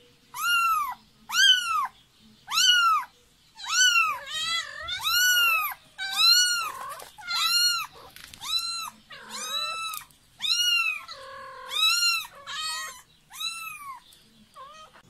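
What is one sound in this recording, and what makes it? A kitten mews loudly and repeatedly, close by.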